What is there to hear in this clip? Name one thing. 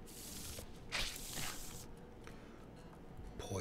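Playing cards swish as they are dealt onto a table.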